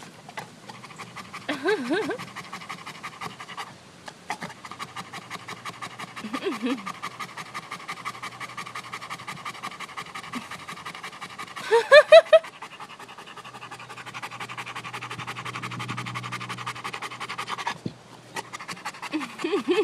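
A large dog pants quickly and steadily up close.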